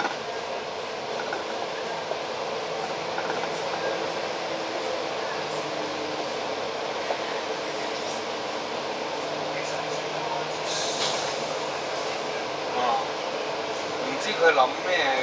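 A vehicle engine hums close by while driving.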